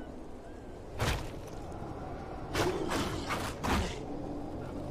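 Heavy blows land with sharp thuds and slashes.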